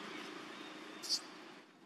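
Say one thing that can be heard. A baby monkey gives a short, shrill squeal up close.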